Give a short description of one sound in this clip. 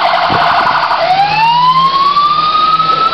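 A fire engine's siren winds up into a loud rising wail.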